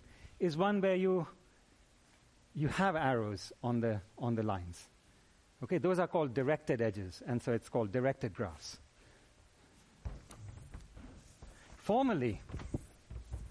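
A middle-aged man lectures with animation in an echoing room.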